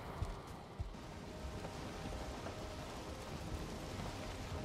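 Waves splash against a sailing boat's hull.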